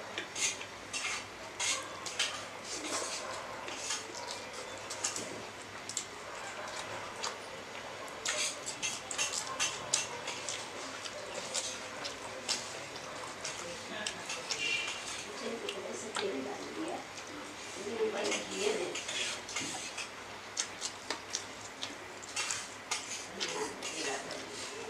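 Fingers squish and mix rice pilaf on a plate close up.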